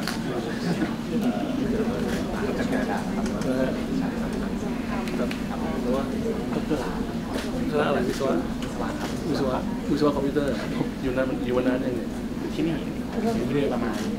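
A group of people murmur in the background of a busy room.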